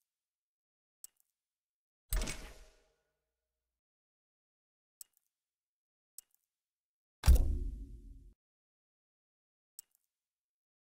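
Short, soft menu clicks tick now and then.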